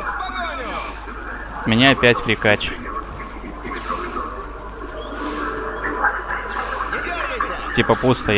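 Magic blasts and weapon hits clash in a busy fantasy battle.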